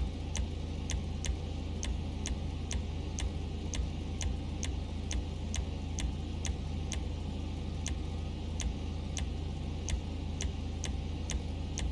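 Short electronic clicks tick quickly, one after another.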